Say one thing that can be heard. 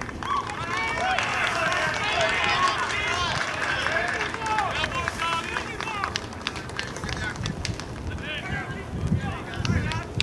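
Young men clap their hands.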